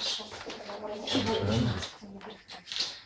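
A middle-aged woman speaks close by with animation.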